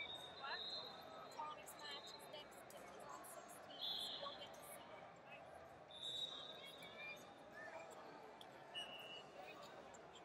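Wrestlers' shoes squeak sharply on a mat.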